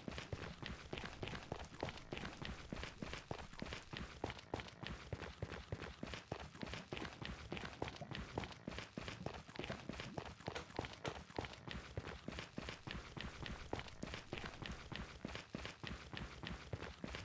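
Footsteps crunch steadily on stone.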